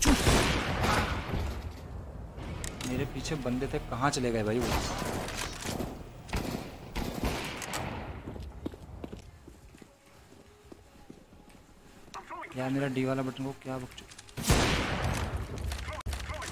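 Gunshots ring out loudly in a video game.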